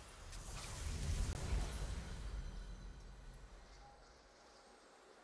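A deep, booming victory fanfare swells and then fades away.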